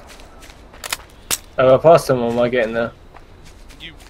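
A rifle is reloaded with a metallic clatter.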